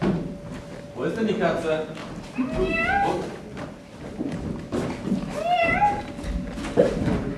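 A young woman speaks with animation on a stage, heard from the audience in a large hall.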